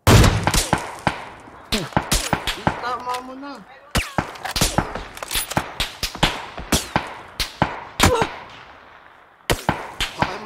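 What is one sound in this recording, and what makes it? Rifle shots crack sharply again and again.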